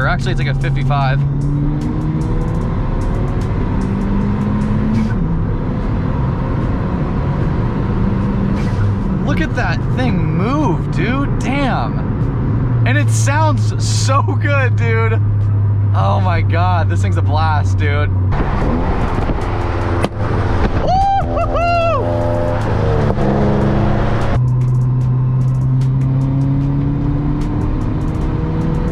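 A car engine drones from inside the car, rising and falling in pitch as it revs and shifts gears.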